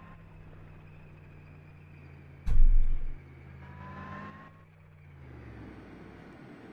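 A tank engine rumbles nearby.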